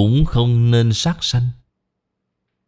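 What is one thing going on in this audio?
An elderly man speaks calmly into a close microphone.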